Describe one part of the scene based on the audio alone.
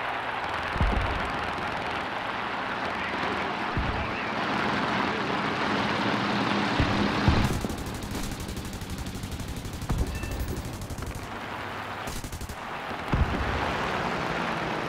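A propeller plane's engine roars steadily.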